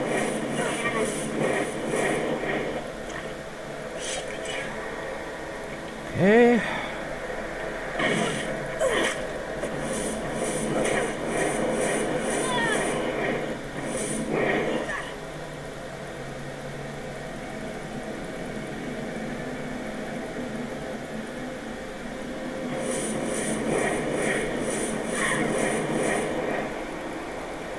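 Fiery spells burst and crackle in rapid bursts.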